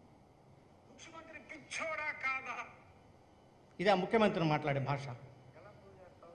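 A middle-aged man speaks calmly into a microphone, heard close.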